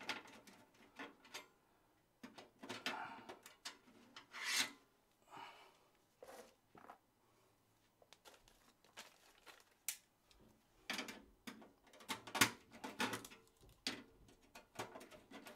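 Hands click and scrape parts into place.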